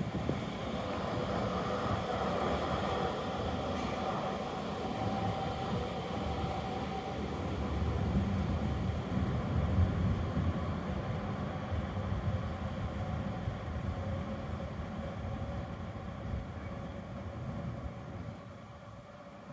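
A tram rolls past with a humming motor and gradually fades into the distance.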